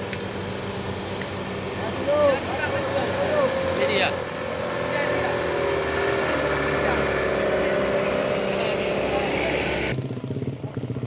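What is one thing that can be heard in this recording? A truck engine rumbles as the truck drives slowly past close by.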